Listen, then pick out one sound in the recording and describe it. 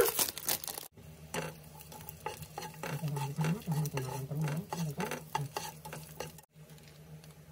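Oil sizzles and crackles in a hot pan.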